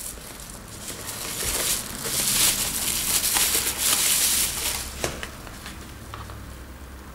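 Bubble wrap crinkles as hands unwrap it.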